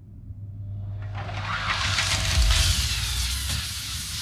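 Air hisses loudly as an airlock cycles.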